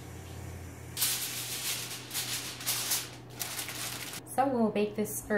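Aluminium foil crinkles and rustles.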